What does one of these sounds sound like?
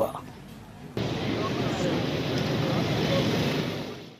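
A motorbike rides by on a street.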